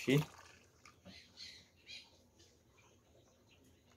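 Liquid pours from a jug into a cup.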